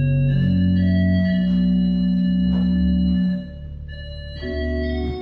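A pipe organ plays sustained chords that echo in a large hall.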